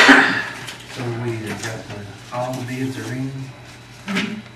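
A man speaks calmly through a microphone in a room.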